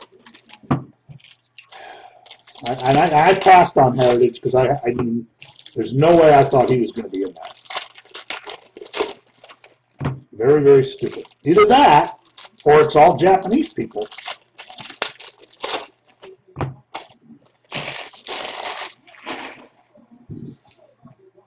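Card packs crinkle and rustle in a man's hands.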